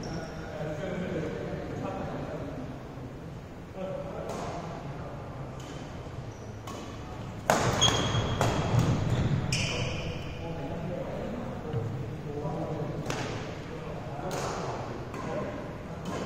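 Shuttlecocks are struck with sharp taps by rackets in a large echoing hall.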